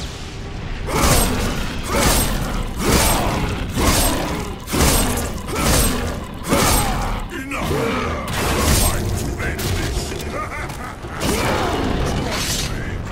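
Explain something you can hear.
A blade slashes into flesh again and again with wet, heavy strikes.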